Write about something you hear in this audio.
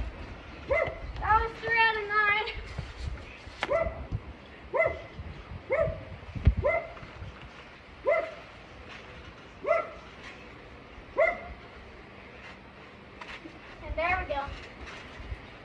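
A young child calls out in short, high cries outdoors.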